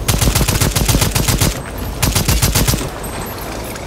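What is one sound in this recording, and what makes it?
An automatic rifle fires rapid bursts of loud shots.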